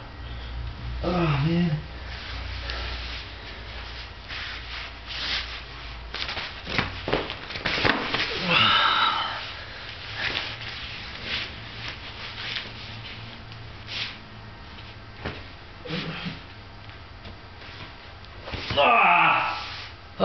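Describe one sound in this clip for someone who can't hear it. A young man grunts and breathes heavily with effort nearby.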